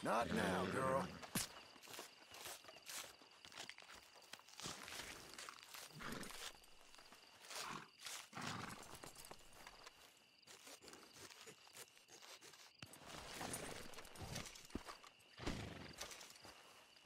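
Wet flesh squelches and tears as an animal carcass is skinned.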